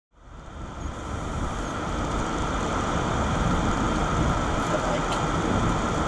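A car's engine hums steadily while driving.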